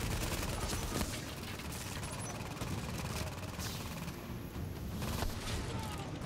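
Single gunshots crack with a ringing echo.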